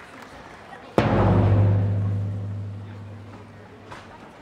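A big drum booms once and rings out.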